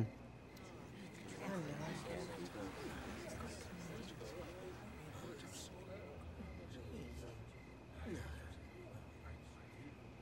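A man speaks quietly and earnestly nearby.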